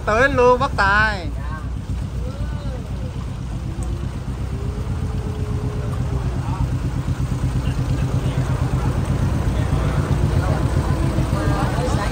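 A boat engine rumbles and throbs steadily close by.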